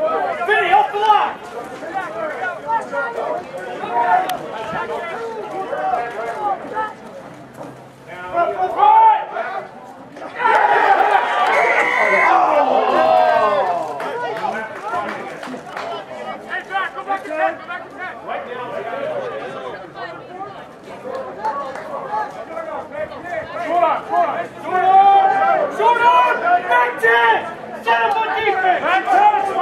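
A crowd of spectators talks and calls out nearby, outdoors.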